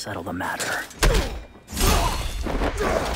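A sword slashes through the air with a sharp, crackling swish.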